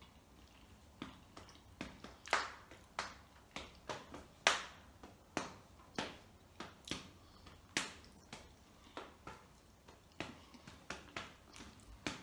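A young woman bites and chews crunchy food close up, with sharp crisp crunches.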